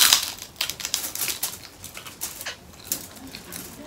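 People chew and smack their lips while eating.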